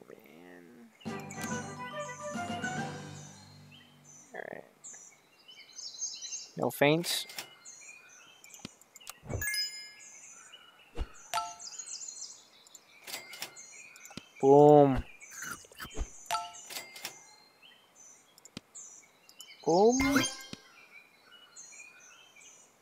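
Short game clicks and pops sound now and then.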